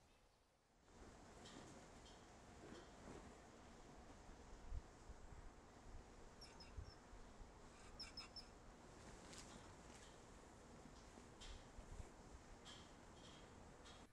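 Wind gusts blow past the microphone.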